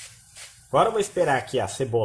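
A spatula scrapes and stirs onions in a pan.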